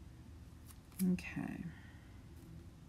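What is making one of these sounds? A strip of tape is pulled and peeled off paper.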